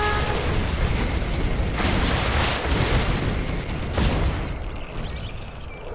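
Jet aircraft engines roar overhead.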